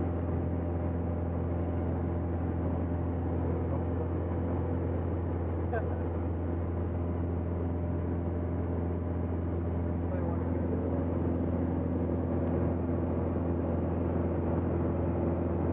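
A small plane's engine drones loudly and steadily inside the cabin.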